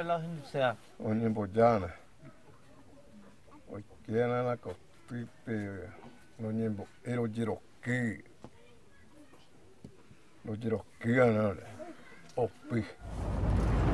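An elderly man speaks calmly and steadily, close by.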